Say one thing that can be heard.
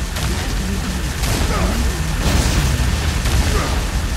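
Energy blasts hiss and explode nearby.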